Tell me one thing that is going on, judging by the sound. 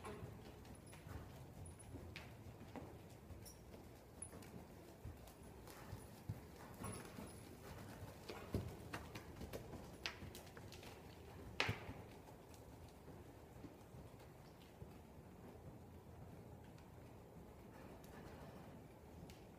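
Horse hooves thud softly on sand in a large echoing hall.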